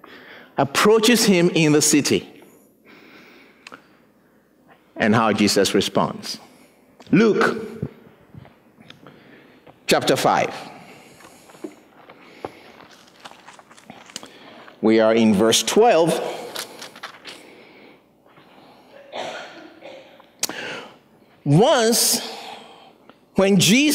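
A man speaks with animation in bursts through a microphone in a large echoing room.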